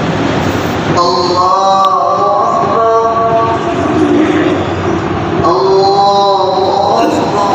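A man chants melodically through a microphone.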